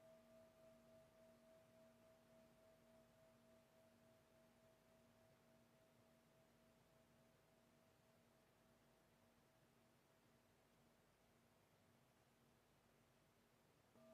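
A singing bowl hums with a steady ringing tone that slowly fades.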